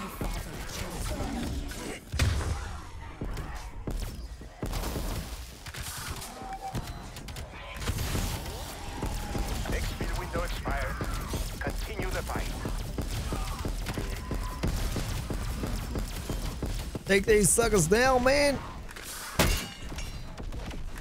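Rapid gunfire crackles and blasts in bursts.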